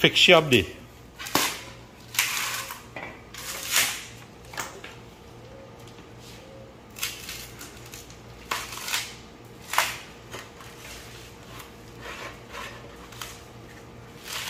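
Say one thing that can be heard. Coconut husk tears and rips as a woman pulls it apart by hand.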